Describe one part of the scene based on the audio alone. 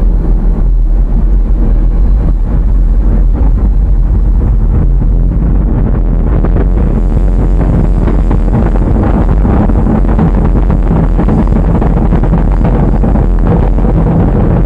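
A rocket engine roars loudly and steadily.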